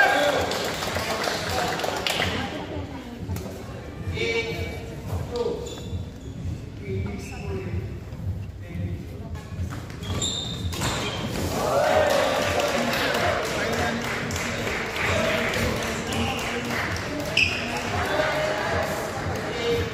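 Shuttlecocks are struck with rackets with sharp pops in a large echoing hall.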